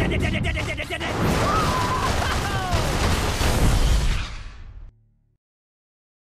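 A loud explosion booms and roars, then fades away.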